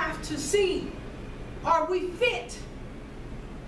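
A woman speaks calmly to an audience.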